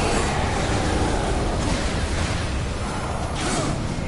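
Fire roars in a burst of flames.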